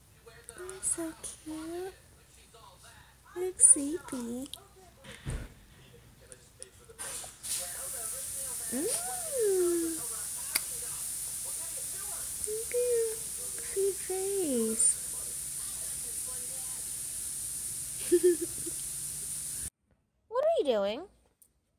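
A young woman talks softly and playfully close by.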